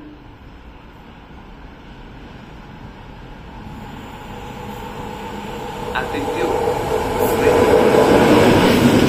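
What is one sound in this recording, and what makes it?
A freight train approaches and rumbles past loudly on the rails, growing louder as it nears.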